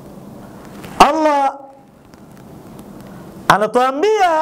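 A middle-aged man chants loudly and melodically, close to a microphone.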